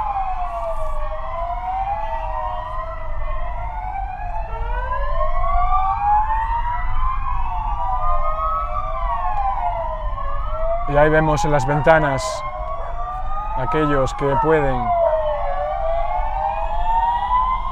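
Several police sirens wail and overlap nearby.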